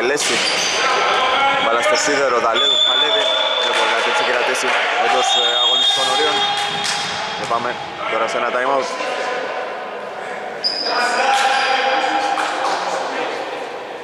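Men shout to one another across an echoing hall.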